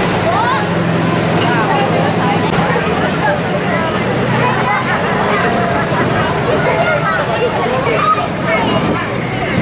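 Armoured vehicle engines rumble steadily as the vehicles drive slowly past.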